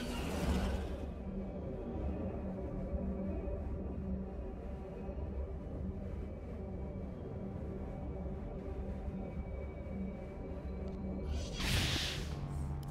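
A hovering engine hums steadily.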